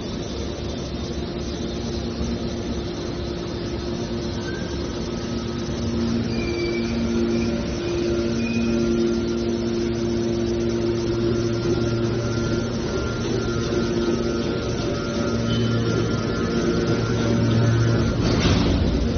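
A large hydraulic baler hums and whines steadily as its press works.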